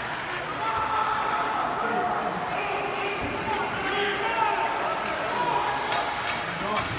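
A crowd of spectators chatters and calls out in an echoing arena.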